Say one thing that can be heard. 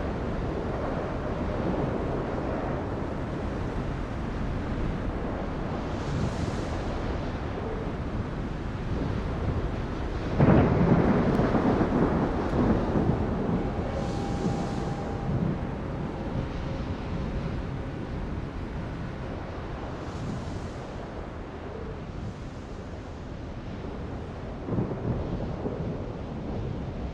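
A ship's engine rumbles steadily.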